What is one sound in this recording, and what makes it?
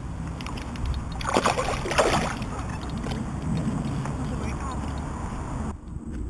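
Water splashes as a fish thrashes near the bank.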